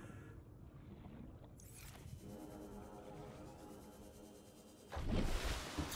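Water bubbles and gurgles in a muffled way underwater.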